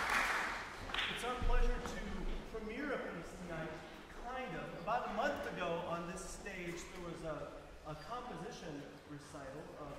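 A man speaks calmly to an audience in a large hall.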